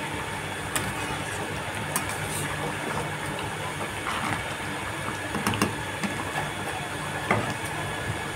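A metal spatula scrapes and stirs thick curry in a metal pan.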